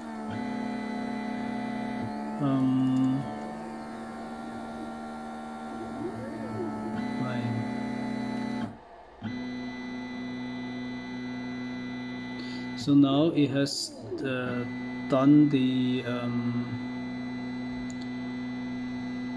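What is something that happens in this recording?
A cooling fan hums steadily.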